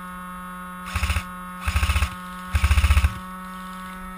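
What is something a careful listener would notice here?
A toy rifle fires three short, rapid bursts close by.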